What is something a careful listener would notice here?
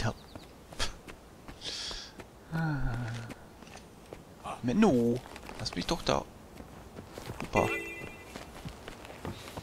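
Footsteps scuff quickly over rock.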